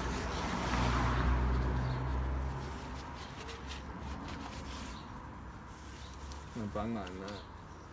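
A cloth rustles as it is wiped and dropped.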